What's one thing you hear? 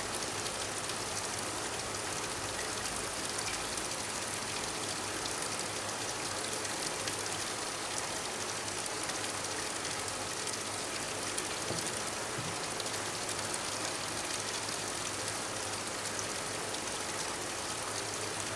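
A thin stream of water pours steadily into a pond, splashing and bubbling.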